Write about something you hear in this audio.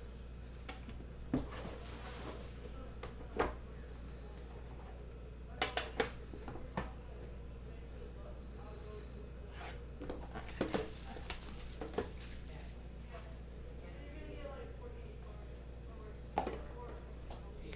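A cardboard box scrapes and taps against a metal tin.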